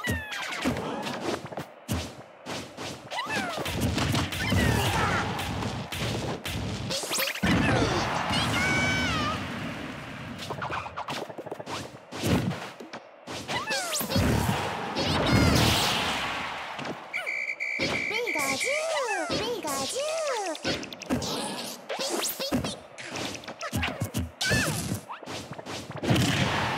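Cartoon fighters trade quick punches and smacks.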